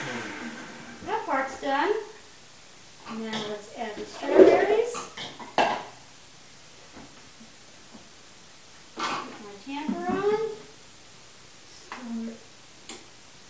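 An elderly woman talks calmly nearby.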